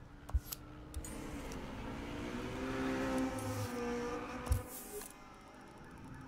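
A car engine rumbles and revs.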